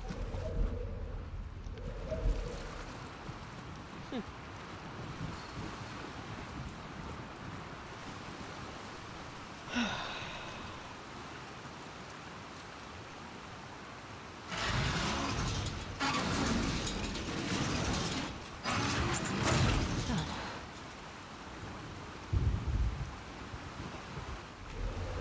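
Water splashes as a person wades through it.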